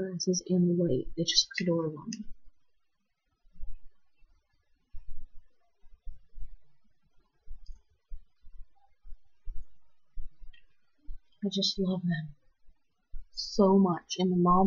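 A young woman speaks casually, close to a microphone.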